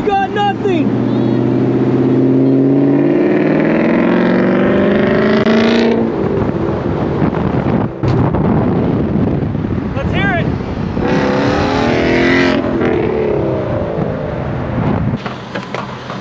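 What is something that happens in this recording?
A sports car engine roars as it revs and accelerates past.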